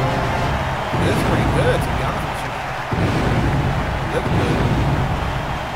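A stadium crowd cheers loudly throughout.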